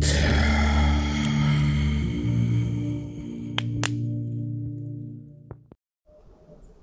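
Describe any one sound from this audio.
A campfire crackles and pops.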